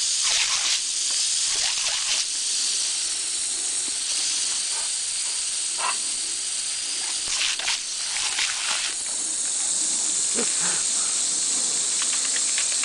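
A jet of water from a hose hisses steadily.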